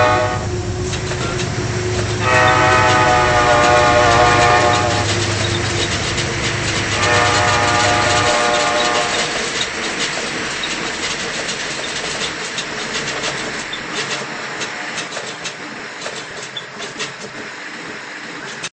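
Commuter train wheels click over rail joints as the cars pass.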